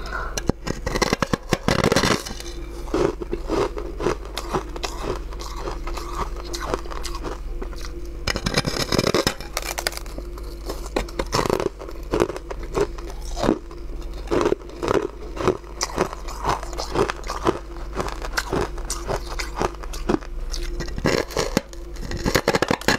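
A woman bites into a block of ice with a loud crack close by.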